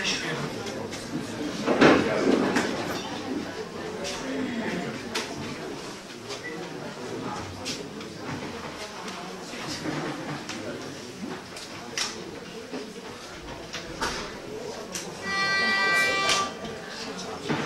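A middle-aged man talks into a microphone, heard through loudspeakers.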